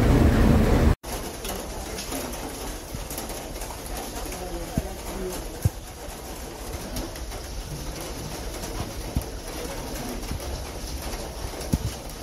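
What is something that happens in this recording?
A train approaches along the rails with a low rumble.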